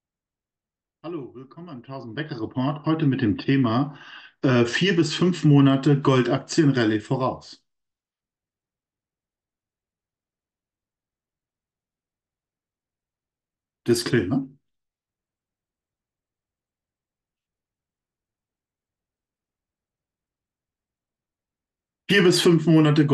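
A man speaks calmly into a microphone, in short bursts with long pauses.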